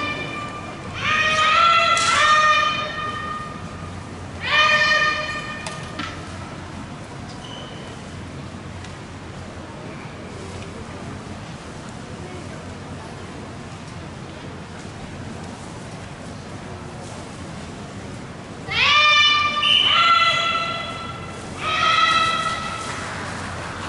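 Young women shout sharp, drawn-out cries in a large echoing hall.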